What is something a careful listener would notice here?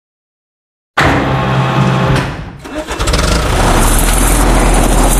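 A bulldozer engine starts and rumbles.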